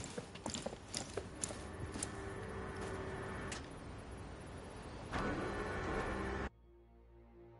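Heavy armoured footsteps clank on a metal floor.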